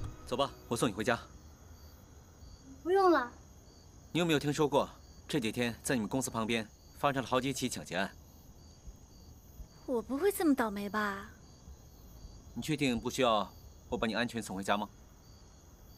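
A man speaks nearby in a questioning tone.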